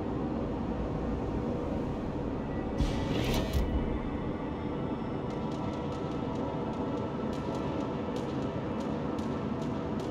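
Waves wash steadily against a large ship's hull.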